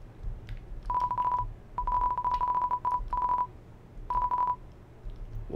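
Short electronic beeps chirp in quick bursts.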